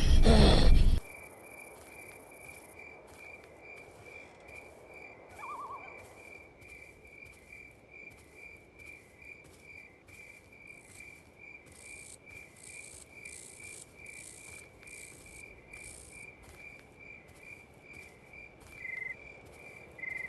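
A creature's limbs patter in a quick, steady rhythm as it crawls.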